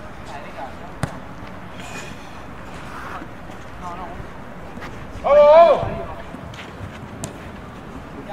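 A ball is kicked with a sharp thud outdoors.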